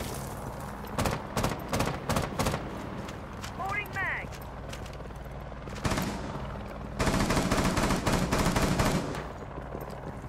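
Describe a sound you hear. Rapid gunfire rings out in loud bursts.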